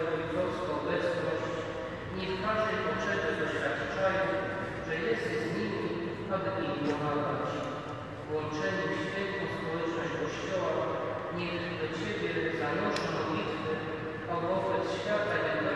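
A congregation of men and women sings together in a large echoing hall.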